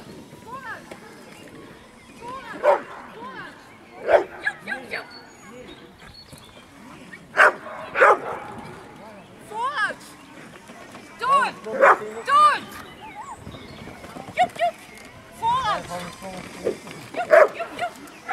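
A man calls out commands to a dog.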